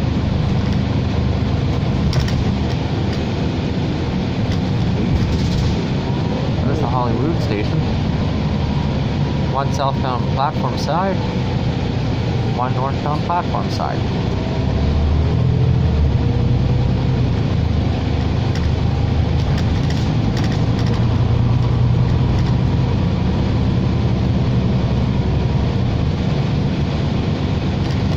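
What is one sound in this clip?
A bus engine rumbles steadily while the bus drives along.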